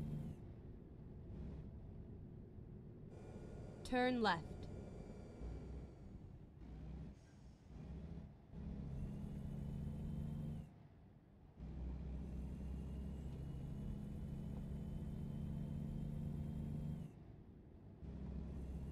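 A truck engine hums steadily and rises and falls as the truck speeds up and slows down.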